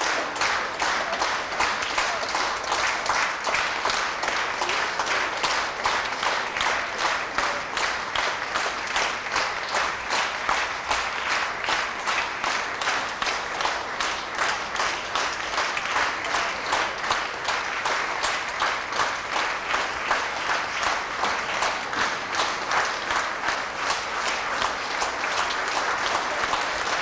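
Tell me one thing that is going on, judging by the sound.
A men's choir sings in a large echoing hall.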